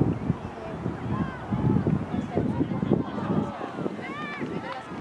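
Players shout to each other far off across an open field.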